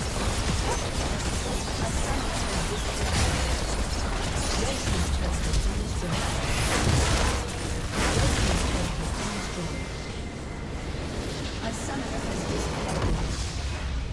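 Spells and attacks in a game crackle and blast in quick bursts.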